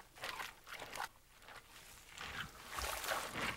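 A wooden stick stirs and scrapes through dry grain in a tub.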